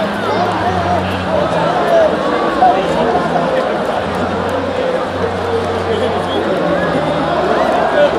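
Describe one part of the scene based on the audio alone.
A large stadium crowd cheers and chatters loudly all around.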